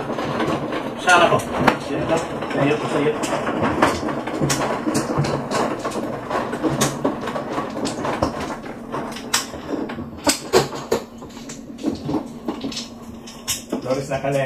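Mahjong tiles clack against each other and the table.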